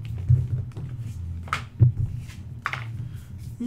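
Playing cards slide and tap against each other.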